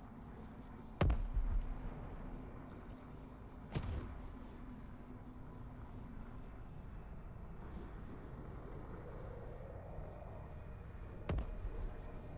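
A gun fires with sharp, loud bangs a few times.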